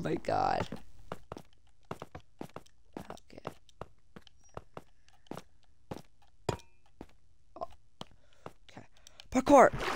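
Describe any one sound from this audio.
Blocks click softly as they are placed in quick succession.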